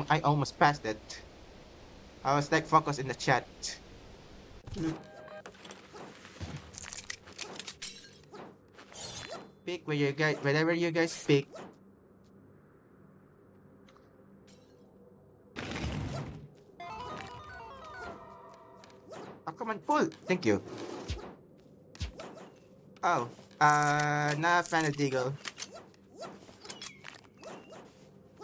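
Short electronic game sound effects chime and blip.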